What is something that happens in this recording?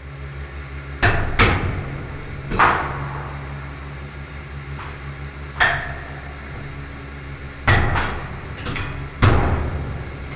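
Metal bearing parts crack and snap loudly under pressure.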